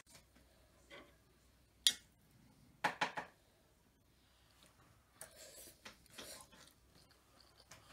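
A fork clinks against a plate.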